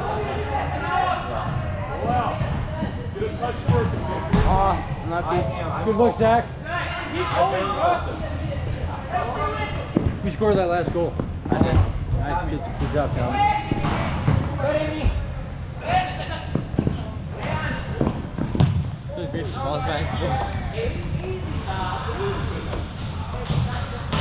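Women shout and call out to each other in a large echoing hall.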